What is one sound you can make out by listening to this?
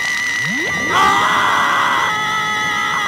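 A young man screams loudly.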